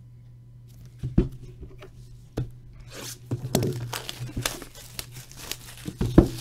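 A cardboard box knocks and scrapes as hands handle it.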